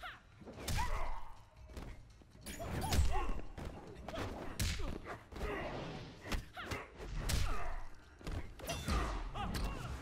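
Heavy punches and kicks land with sharp thuds.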